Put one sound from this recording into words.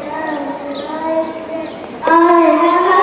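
A young girl speaks into a microphone through a loudspeaker.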